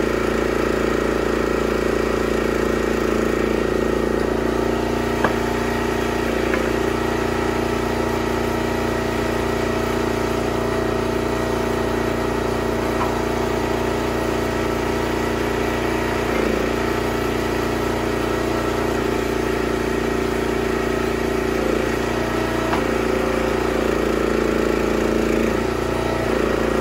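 A gasoline engine drones steadily close by.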